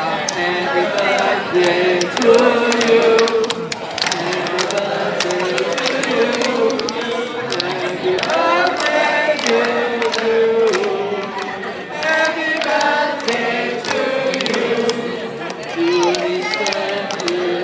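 A group of elderly men and women sing together loudly nearby.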